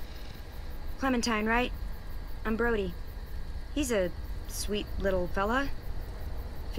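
A teenage girl speaks calmly and warmly, close by.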